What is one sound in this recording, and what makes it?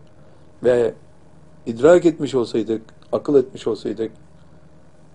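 An elderly man speaks calmly and earnestly into a close microphone.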